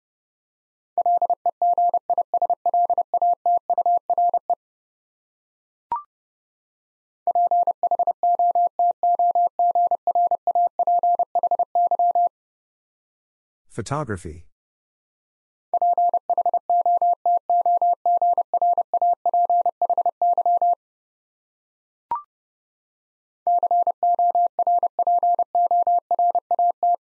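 Rapid Morse code beeps at one steady pitch sound in bursts.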